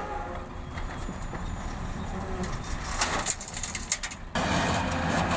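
A heavy truck engine rumbles at idle.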